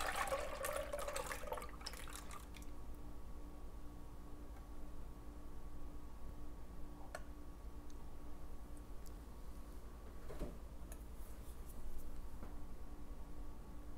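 Thick liquid pours and splashes into a metal strainer.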